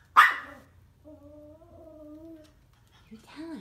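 A small dog whines softly.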